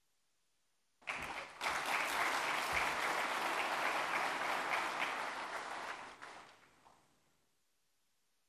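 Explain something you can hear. A large audience applauds loudly in a big hall, then the applause fades.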